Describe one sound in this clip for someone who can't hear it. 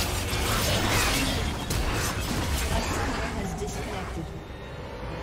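Game combat effects clash and crackle in quick bursts.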